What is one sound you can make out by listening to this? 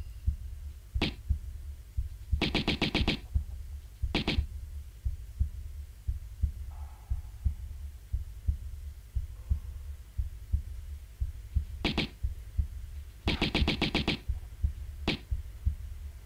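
Pistols fire in quick bursts of sharp shots.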